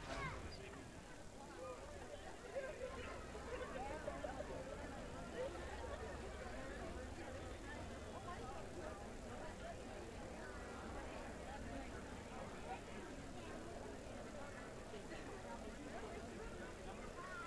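A harmonica wails through a loudspeaker.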